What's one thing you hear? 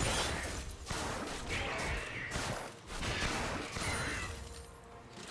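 Magic blasts whoosh and crackle in quick bursts.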